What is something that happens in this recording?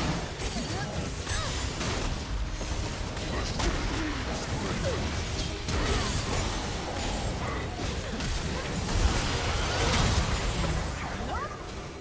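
Game spell effects whoosh, crackle and clash in a hectic fight.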